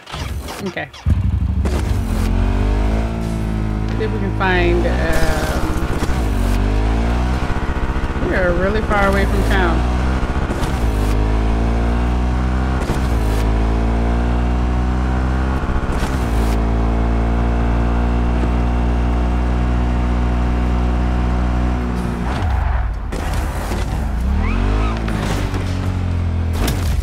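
A motorcycle engine starts and roars steadily, revving up and down as it rides.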